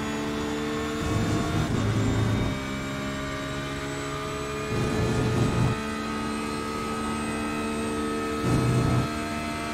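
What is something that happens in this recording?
Tyres rumble loudly over kerbs in short bursts.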